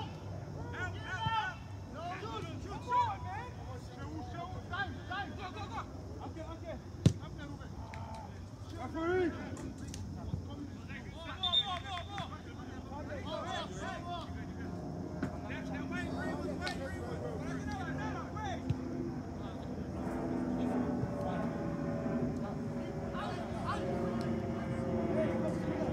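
Young men shout and call to each other in the distance across an open field.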